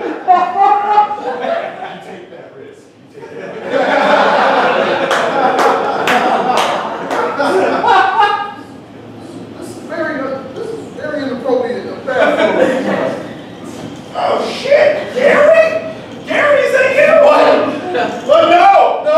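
Men speak loudly on a small stage, heard from the audience.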